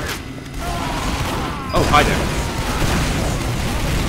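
Gunshots fire from close by.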